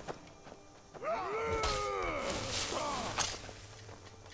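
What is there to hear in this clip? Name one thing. A fire spell bursts with a roaring whoosh.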